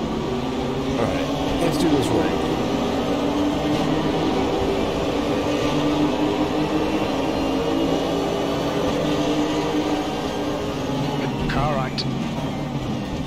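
Other race car engines drone close by.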